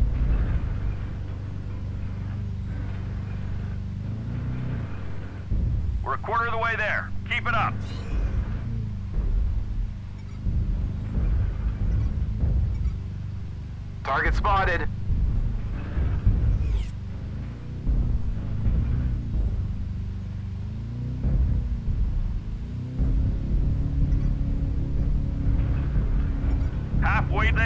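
A heavy machine rumbles low and steady.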